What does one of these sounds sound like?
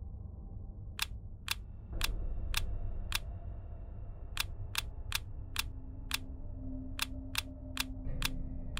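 Small tiles click into place, one after another.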